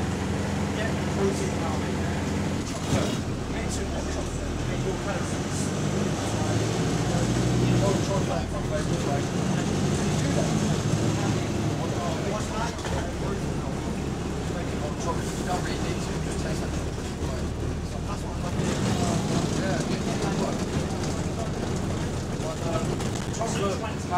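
A bus rattles and shakes as it drives along the road.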